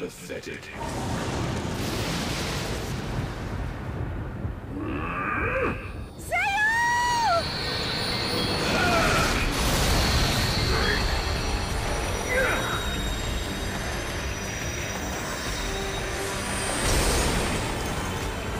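A deep rushing roar of a magical blast surges and booms.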